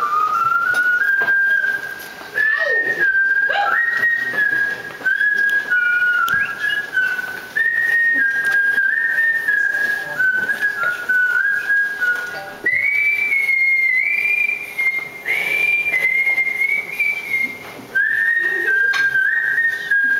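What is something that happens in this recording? A young woman sings a high, drawn-out melody through a microphone.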